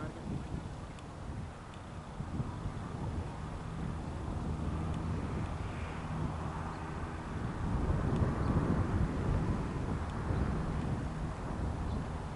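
Wind blows across an open field outdoors.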